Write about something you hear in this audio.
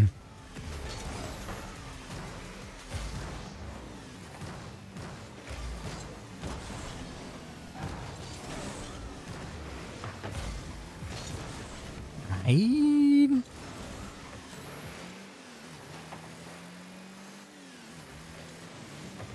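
A game car's engine hums and whooshes as it boosts.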